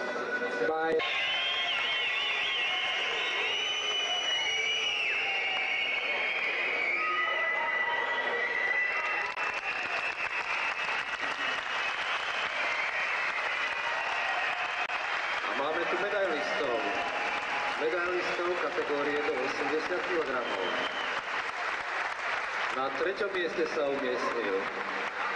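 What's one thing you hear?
A crowd cheers and whistles loudly in a large hall.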